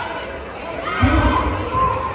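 Nearby spectators shout loudly.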